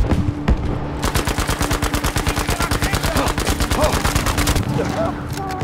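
A machine gun fires in a rapid, steady burst.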